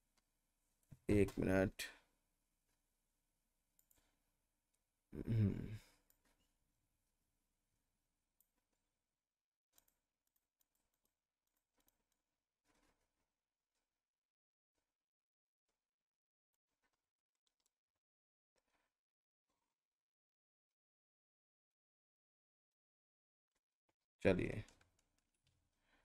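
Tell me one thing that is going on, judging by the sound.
A man speaks calmly in short bursts, close to a microphone, with long pauses between.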